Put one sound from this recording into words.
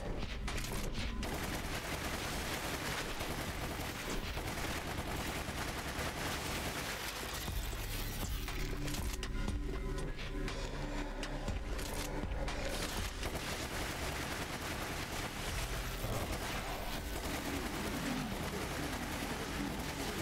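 Gunfire from a game rattles in rapid bursts.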